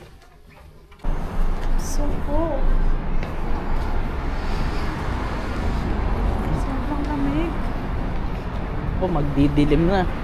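Wind blows outdoors with city traffic rumbling.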